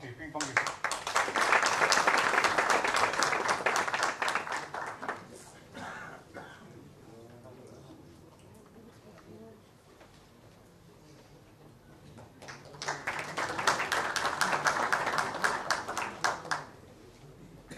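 A large audience applauds in an echoing hall.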